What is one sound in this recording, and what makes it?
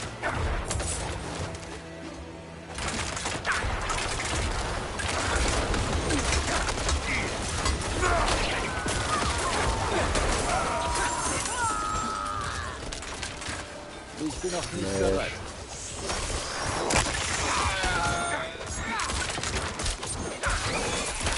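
Magic blasts and weapon hits crash in a heavy fight.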